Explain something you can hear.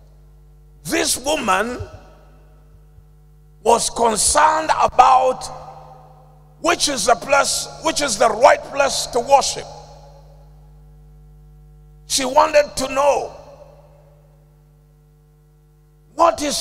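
A man preaches forcefully into a microphone, in bursts with pauses, in a reverberant hall.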